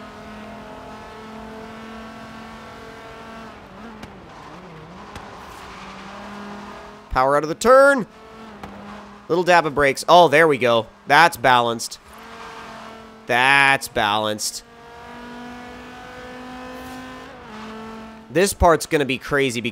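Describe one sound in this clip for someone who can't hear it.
A car engine roars steadily at high speed, its pitch shifting as the car accelerates and slows.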